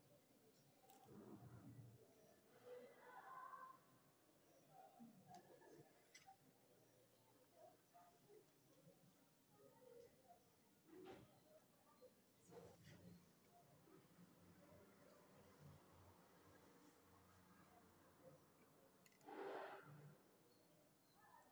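A plastic ruler slides and taps on paper.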